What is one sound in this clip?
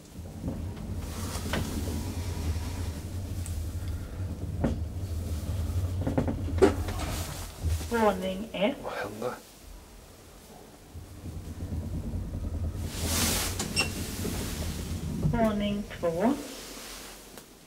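An elevator hums steadily as the car moves.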